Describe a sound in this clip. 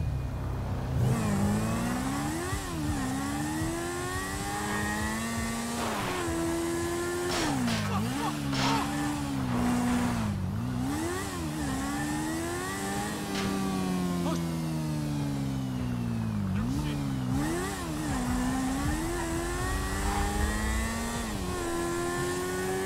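A motorcycle engine revs up and down as it speeds along.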